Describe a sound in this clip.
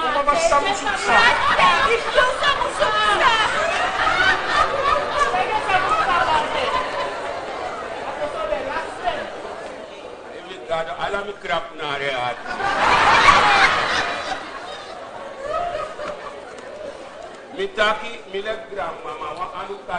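A woman speaks loudly and with animation, heard through a microphone.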